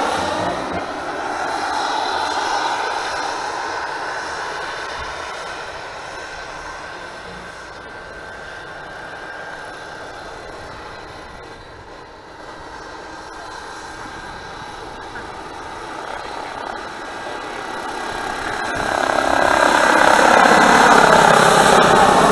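A helicopter's rotor and engine drone, fading away and then roaring loudly as the helicopter flies close by.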